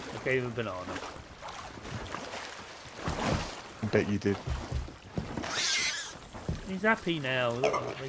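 Waves wash gently against a shore.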